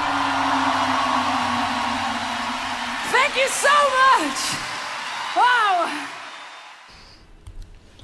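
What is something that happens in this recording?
Loud rock music plays from a concert recording.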